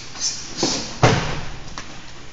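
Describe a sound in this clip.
A body thuds heavily onto a padded floor.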